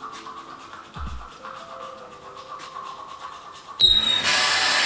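A toothbrush scrubs against teeth.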